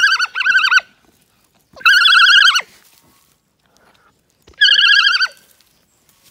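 A newborn lamb bleats loudly, close by.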